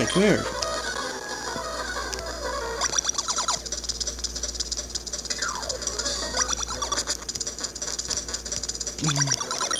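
Bright electronic game music plays with a bouncy tune.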